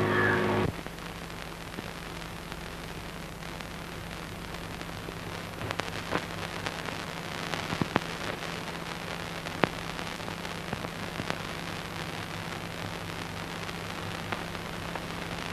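Fingers rustle through dry puffed rice in a bowl.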